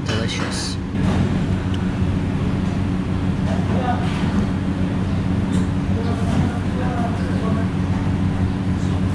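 Soft flatbread tears apart between fingers.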